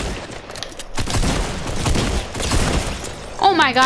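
Rapid video game gunfire crackles.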